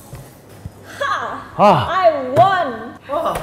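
A young woman exclaims with delight, close by.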